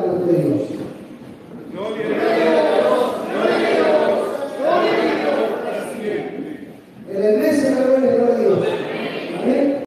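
A keyboard and guitars play along with the singing.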